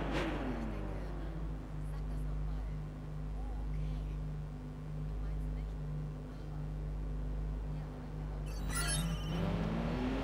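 A sports car engine idles with a low steady rumble.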